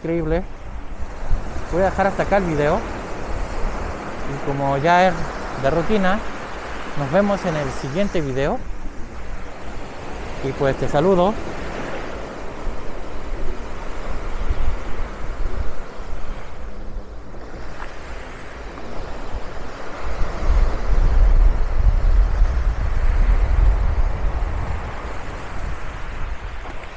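Small waves wash and break on a sandy shore.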